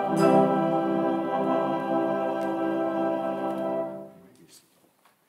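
A choir sings a sustained chord together.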